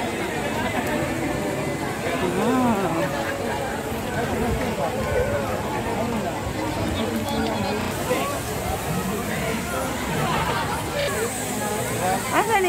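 Children shout and laugh nearby.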